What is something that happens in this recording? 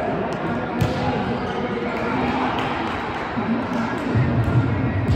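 Young women chat and call out in a large echoing hall.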